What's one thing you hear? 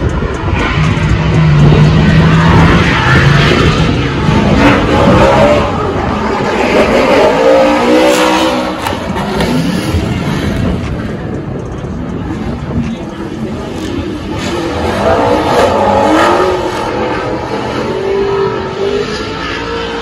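Tyres squeal as cars slide sideways.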